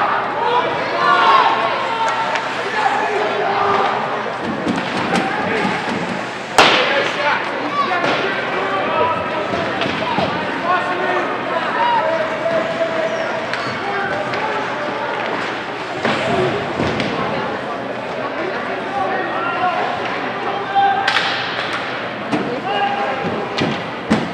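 A crowd of spectators chatters in an echoing rink.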